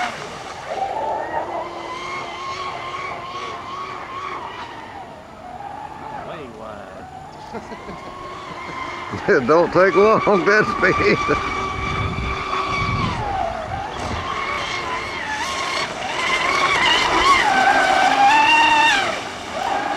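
A model speedboat engine whines loudly, rising and falling in pitch as the boat races across the water.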